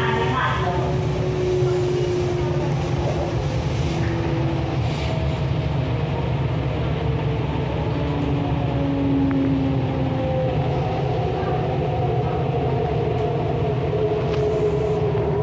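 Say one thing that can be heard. Traction motors whine and fall in pitch as an electric train slows into a station.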